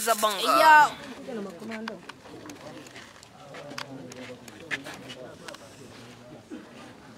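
Several men talk quietly nearby outdoors.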